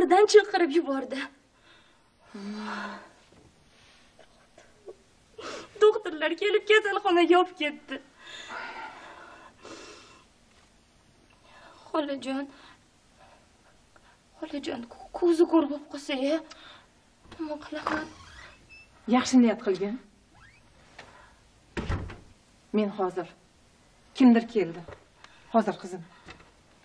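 A young woman talks tearfully, close by.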